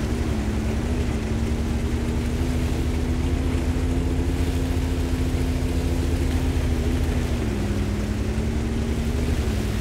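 A tank engine rumbles steadily as it drives, with its pitch rising and falling slightly.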